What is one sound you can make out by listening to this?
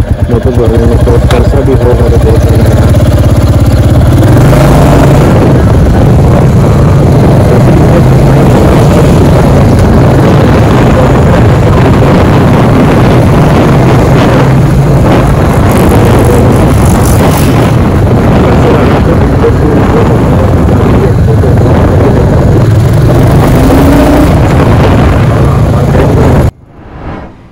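A motorcycle engine rumbles loudly and steadily up close while riding.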